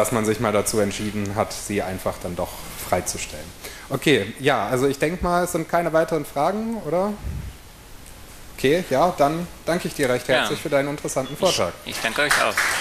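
A young man speaks calmly through a microphone in a large room.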